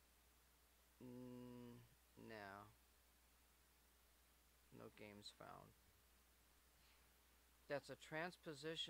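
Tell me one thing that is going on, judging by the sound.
A young man speaks calmly into a microphone, close by, with pauses.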